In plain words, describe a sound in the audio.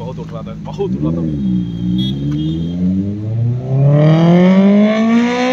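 A motorcycle engine revs up and down.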